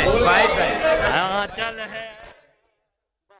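A crowd of men chants and sings loudly, close by, then stops abruptly.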